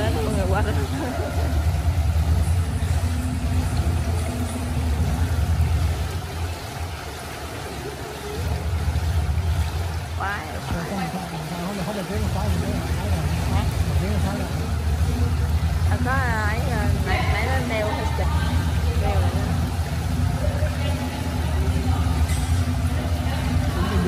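Water splashes as swimmers move through a pool.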